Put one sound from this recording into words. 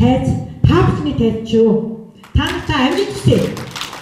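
An elderly woman speaks into a microphone, heard through loudspeakers.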